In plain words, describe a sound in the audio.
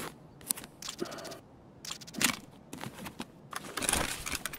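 Interface clicks tick sharply as items are moved around.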